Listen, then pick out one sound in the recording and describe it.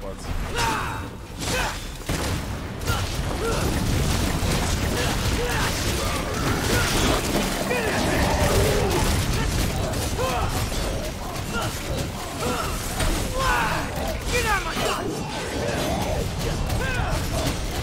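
Heavy impacts thud and crash.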